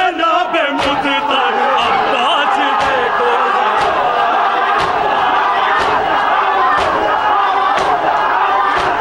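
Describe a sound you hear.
A young man chants loudly into a microphone.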